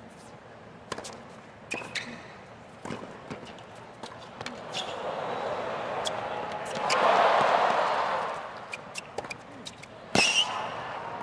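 A tennis ball is struck sharply by rackets, back and forth.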